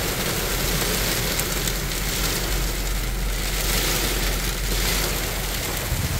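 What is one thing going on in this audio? Heavy rain and sleet patter steadily on a car's windscreen and roof.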